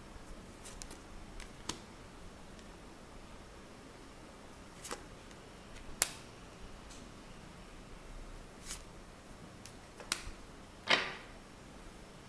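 Cards riffle as a deck is shuffled by hand.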